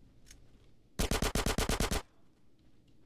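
Rapid gunfire bursts out in a quick volley.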